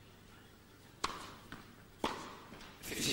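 A tennis racket strikes the ball with sharp pops.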